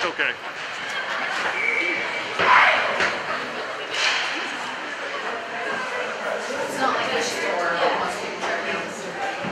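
A crowd chatters in a large echoing hall.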